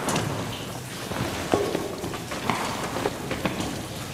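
A man climbs a metal ladder, his feet clanking on the rungs.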